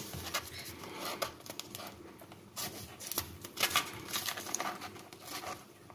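A metal blade clicks as it folds into a small knife.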